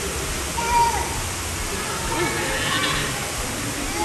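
Water splashes as a bucketful is poured over a woman.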